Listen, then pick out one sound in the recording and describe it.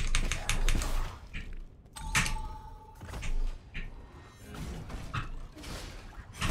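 Short electronic zaps and hits from a video game sound repeatedly.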